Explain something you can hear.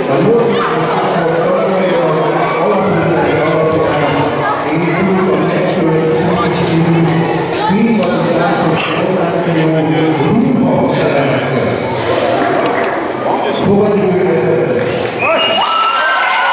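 An older man reads out in a large echoing hall.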